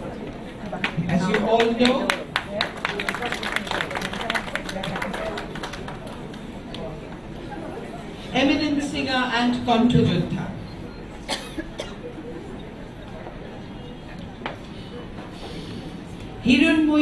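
A small crowd applauds in a hall.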